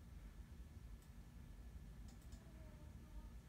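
A few light clicks sound at a computer desk close by.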